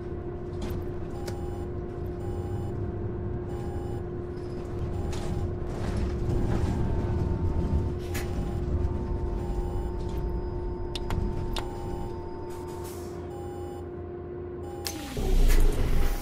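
A diesel city bus engine drones as the bus drives.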